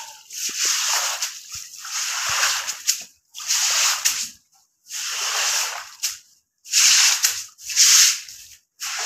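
A broom sweeps over a wet floor in repeated hissing strokes.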